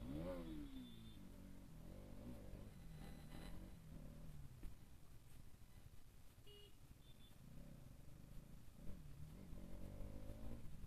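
A motorcycle engine hums steadily up close as the bike rides along.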